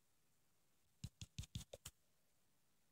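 Quick, sharp hits sound as a sword strikes a witch in a video game.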